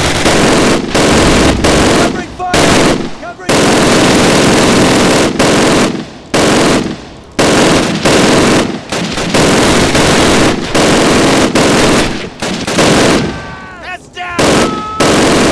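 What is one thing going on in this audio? A heavy machine gun fires long, loud bursts close by.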